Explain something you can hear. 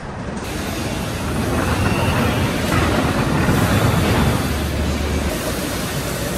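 A steel cart rumbles across a concrete floor.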